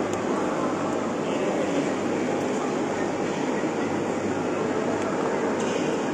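A table tennis ball clicks back and forth on paddles and a table.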